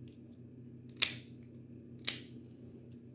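Nail clippers snap sharply, twice.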